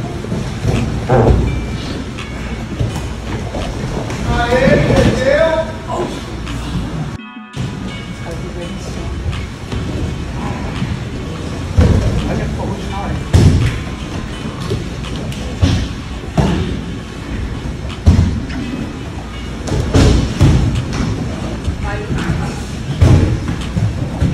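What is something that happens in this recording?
Bodies thud against a padded wall and mat.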